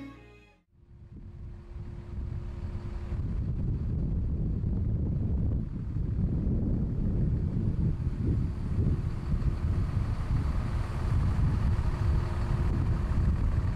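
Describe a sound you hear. A large motorhome's engine rumbles deeply as it rolls slowly up close.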